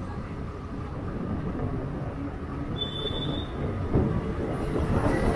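Wind rushes loudly past, heard while riding on a motorbike.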